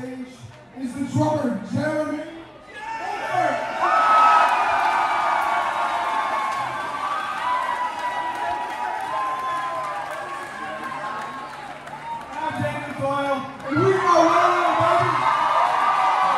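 A rock band plays loud live music in a large echoing room.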